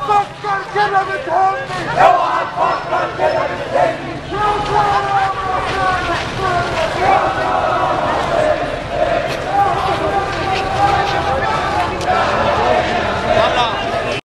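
A large crowd of men chants loudly in unison outdoors.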